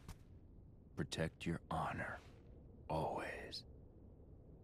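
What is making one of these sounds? An elderly man speaks weakly and haltingly, close by.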